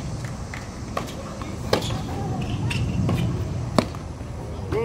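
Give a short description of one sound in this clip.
Tennis balls are struck with sharp pops.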